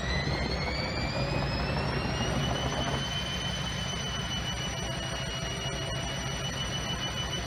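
A washing machine motor whines, rising in pitch and then holding steady.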